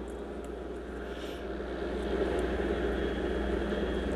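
Cards rustle softly as they are shuffled in the hands.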